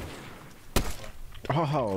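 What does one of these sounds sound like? A sniper rifle fires a sharp shot.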